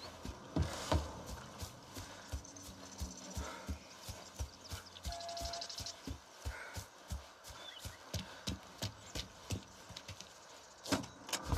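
Footsteps crunch on grass and gravel at a steady walking pace.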